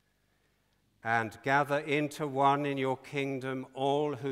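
An elderly man chants prayers aloud into a microphone in a large echoing hall.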